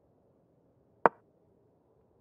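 A single sharp click sounds as a chess piece is moved.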